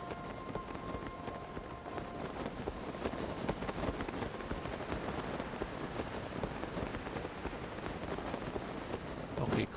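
Wind rushes steadily past during a glide through the air.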